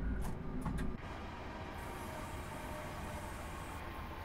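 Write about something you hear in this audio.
A train rolls past outdoors with a softer hum.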